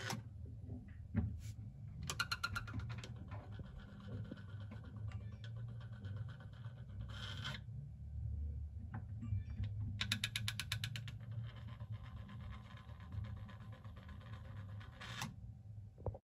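A plastic flap clicks as it swings open and shut.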